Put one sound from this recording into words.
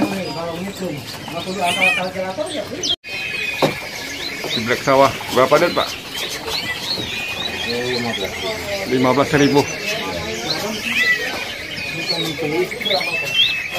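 Small birds chirp and twitter in quick bursts close by.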